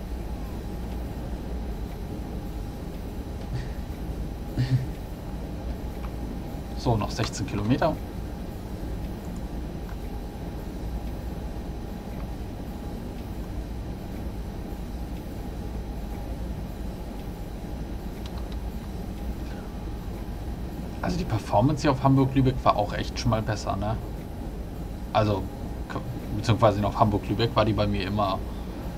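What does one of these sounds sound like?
A train engine hums and rumbles steadily as the train runs along the track.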